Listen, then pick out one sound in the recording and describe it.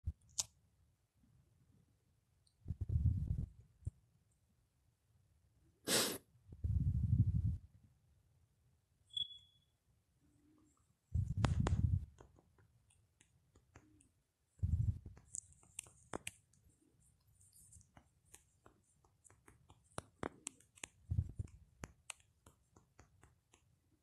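Light taps click on a phone's touch keyboard.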